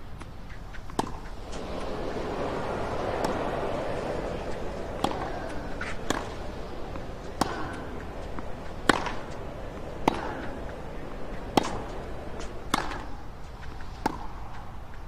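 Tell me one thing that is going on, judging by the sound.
Rackets strike a tennis ball back and forth in a rally.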